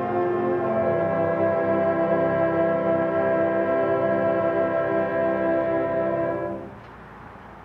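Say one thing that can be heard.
A brass band plays a loud, sustained chord outdoors that ends abruptly.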